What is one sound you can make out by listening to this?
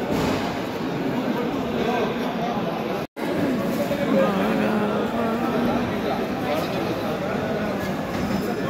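Many men and women chatter at once all around.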